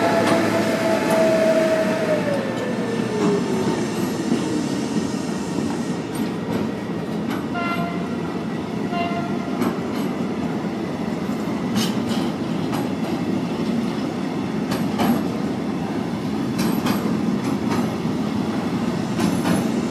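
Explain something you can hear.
A container freight train rumbles past at speed.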